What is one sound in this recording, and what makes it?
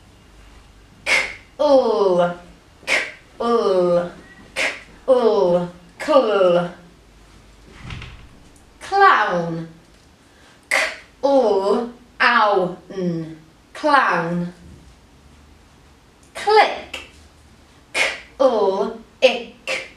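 A young woman speaks clearly and slowly nearby, with lively expression.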